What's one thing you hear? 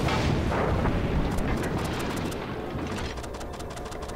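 Heavy guns boom in rapid bursts.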